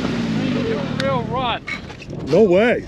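A man talks outdoors.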